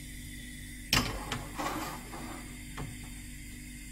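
A frying pan scrapes against a stove grate.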